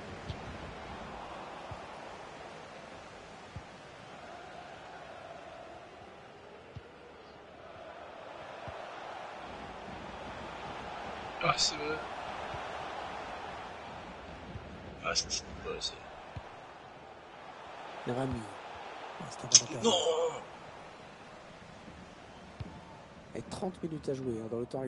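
A stadium crowd murmurs and roars steadily.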